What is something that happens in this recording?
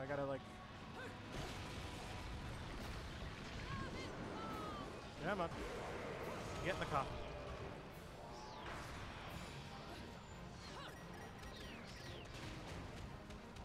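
Explosions and fire roar from a video game.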